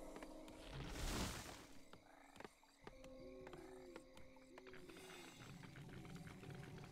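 Short game sound effects clank and thud in quick succession.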